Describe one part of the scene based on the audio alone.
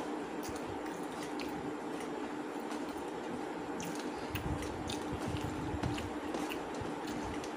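A hand squishes and mixes rice on a metal plate.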